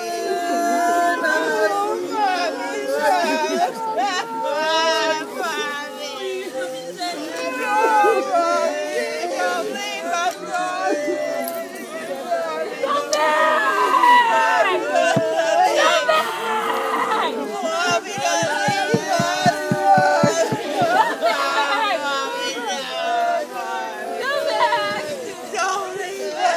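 A woman wails and sobs loudly close by.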